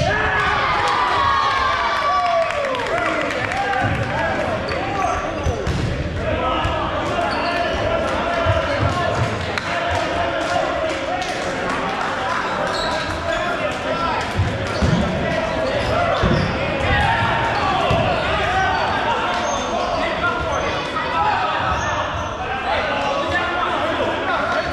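Many voices chatter and shout across a large echoing gym.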